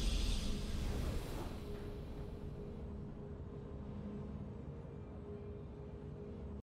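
A triumphant game fanfare swells and then fades into a soft, steady hum.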